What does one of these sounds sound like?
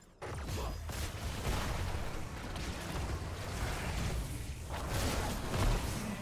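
Game spell effects crackle, zap and boom in a busy fight.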